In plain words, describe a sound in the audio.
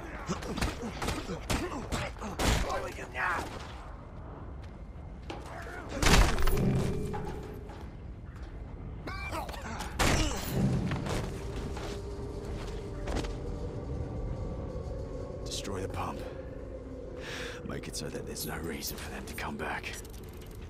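Punches land with heavy thuds in a fight.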